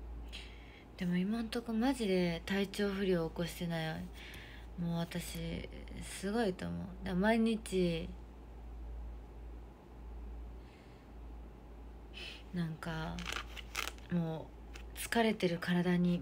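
A young woman talks close to the microphone in a casual voice.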